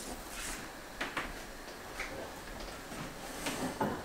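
An oven door clunks open.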